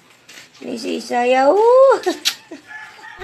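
A toddler cries and whines close by.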